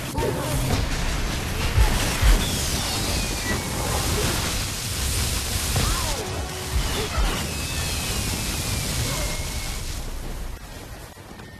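Magic spells and blows crash and burst loudly in a fierce fight.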